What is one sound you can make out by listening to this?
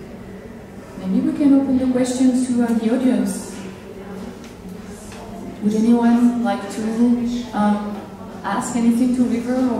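A woman speaks clearly into a microphone, heard through loudspeakers.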